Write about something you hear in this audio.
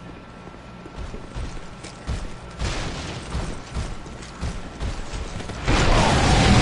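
Heavy weapon blows thud and clang in a fight.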